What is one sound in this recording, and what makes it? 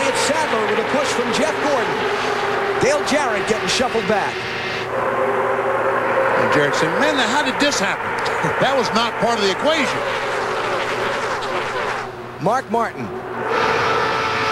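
Race cars roar past one after another, their engines rising and falling in pitch as they go by.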